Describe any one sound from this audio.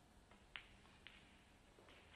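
Snooker balls knock together with a short click.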